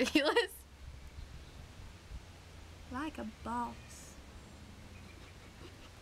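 A young woman whispers and giggles close by.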